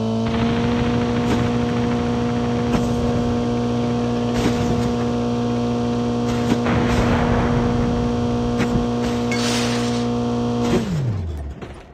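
A car engine hums steadily, then winds down.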